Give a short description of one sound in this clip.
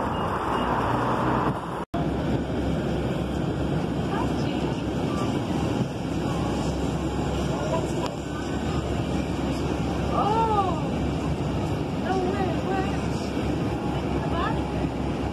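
A bus engine rumbles steadily while the bus drives.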